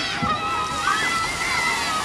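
A large bucket of water tips over and splashes down heavily.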